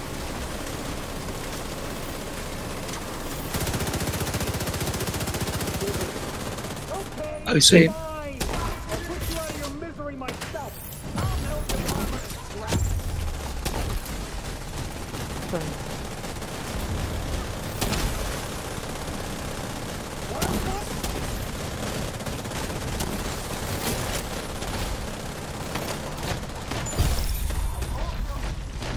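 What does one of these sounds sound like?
Rapid gunfire rattles in a large echoing hall.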